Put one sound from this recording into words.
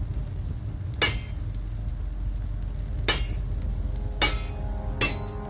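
A hammer strikes metal on an anvil with sharp ringing clangs.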